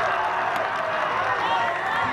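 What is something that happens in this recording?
A baseball bat cracks against a ball.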